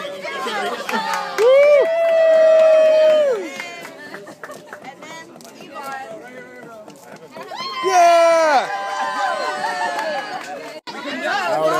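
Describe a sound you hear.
A crowd of people chatter and cheer nearby.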